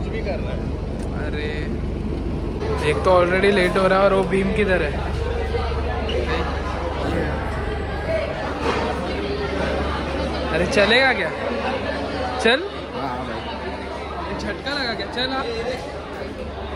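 Many voices chatter in a busy echoing hall.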